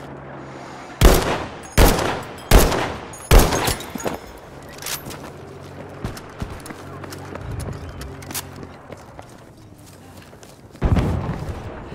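Rifle shots crack loudly several times.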